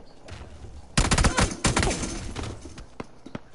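Gunshots fire in rapid bursts, loud and close.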